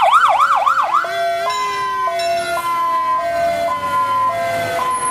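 A fire engine siren wails and slowly winds down.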